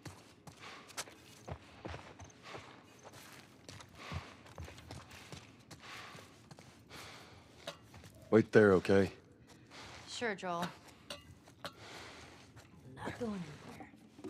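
Footsteps crunch over scattered debris.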